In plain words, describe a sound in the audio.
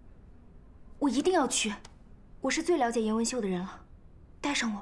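A young woman speaks earnestly, close by.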